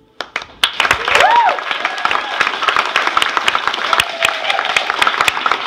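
Listeners whoop and cheer.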